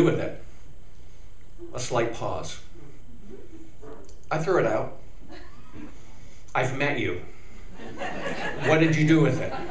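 An elderly man speaks expressively into a microphone, with pauses between phrases.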